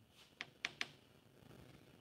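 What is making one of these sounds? A gloved hand rubs and taps across a wet, slick surface.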